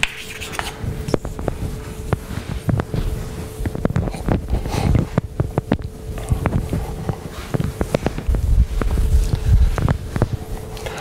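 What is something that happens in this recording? An eraser rubs across a blackboard.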